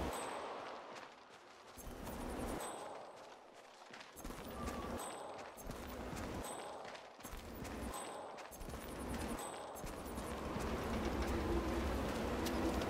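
Footsteps crunch softly through grass and dirt.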